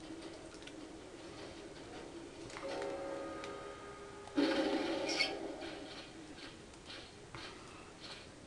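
Video game sound effects play through a television loudspeaker, with a sudden loud burst partway through.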